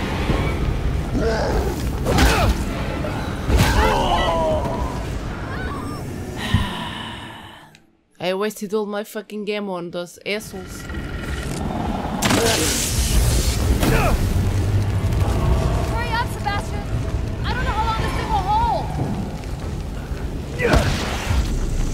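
Heavy blows thud and crash in a fight.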